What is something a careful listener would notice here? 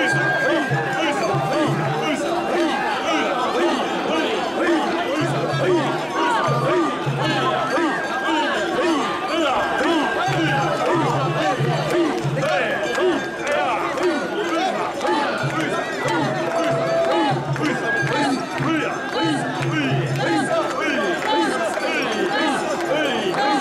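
Many voices shout and call out all around in a noisy crowd.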